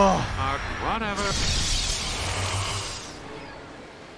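A magic spell bursts with a loud rushing whoosh.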